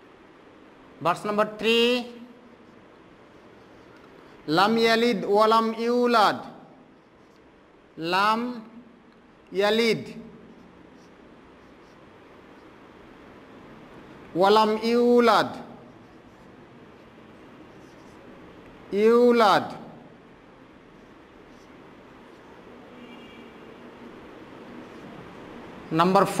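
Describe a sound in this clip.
A man recites in short, drawn-out chanted phrases close by.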